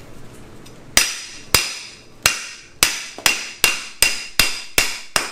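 A hammer strikes metal in a steady series of sharp ringing blows.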